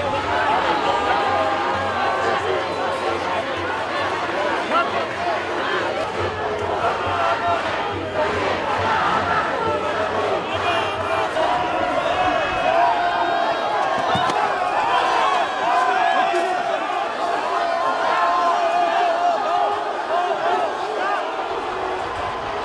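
A large crowd shouts and chants loudly outdoors.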